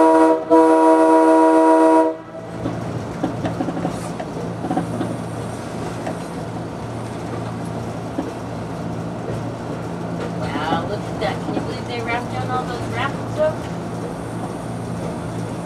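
A diesel railcar engine drones as it rolls along the track.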